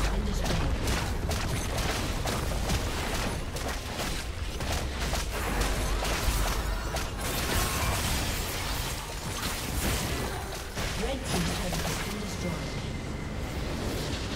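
Game spell blasts and hits crackle rapidly in a busy fight.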